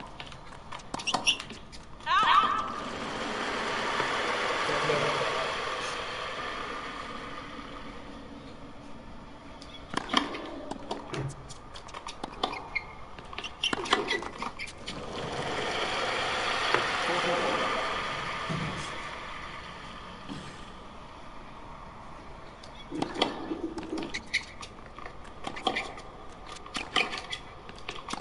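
A tennis ball is struck back and forth with sharp pops of a racket.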